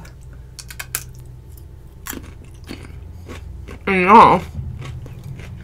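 A woman bites into a crisp cucumber with a loud crunch.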